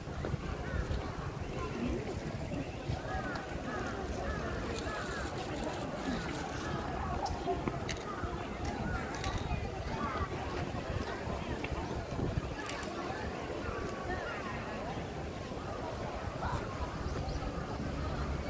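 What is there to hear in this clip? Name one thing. Many people chatter and talk nearby outdoors.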